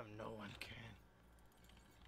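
A young man speaks briefly into a microphone.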